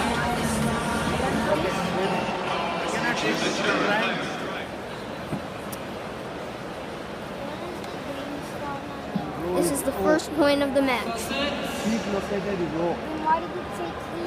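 People in a crowd nearby talk loudly.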